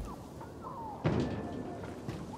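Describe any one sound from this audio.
A heavy thud lands as someone drops from a height.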